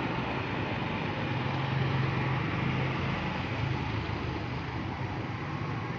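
A motorcycle engine hums as it passes by.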